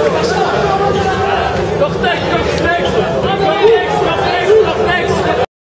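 A crowd of young men chatters in a large echoing hall.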